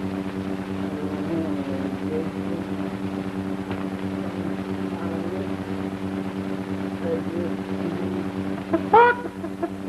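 A man talks quietly to himself.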